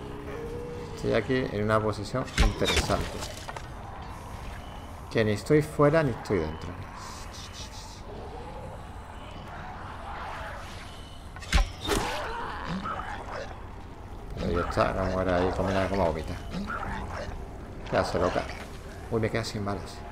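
Creatures groan and snarl close by.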